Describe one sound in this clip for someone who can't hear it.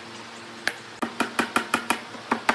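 A hammer taps on a thick wooden beam.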